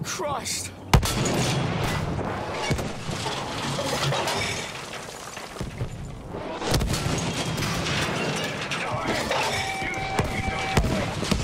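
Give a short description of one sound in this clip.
Explosions rumble and crackle nearby.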